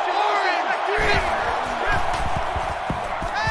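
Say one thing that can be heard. Football players collide with dull thuds.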